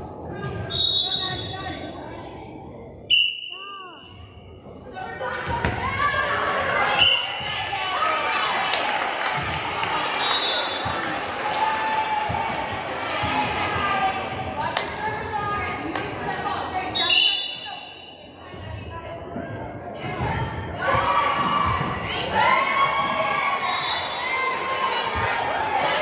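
Girls chatter and call out in a large echoing gym.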